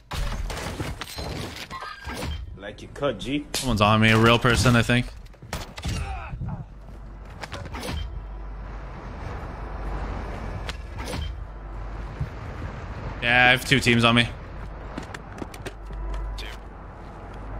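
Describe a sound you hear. Rapid gunshots crack from a video game.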